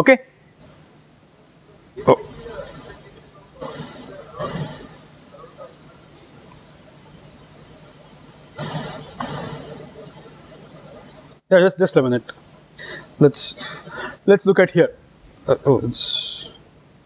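A middle-aged man speaks calmly into a clip-on microphone, with pauses.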